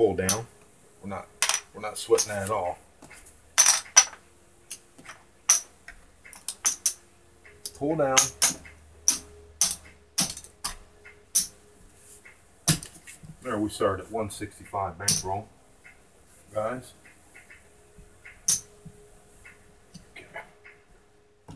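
Poker chips clack and click together.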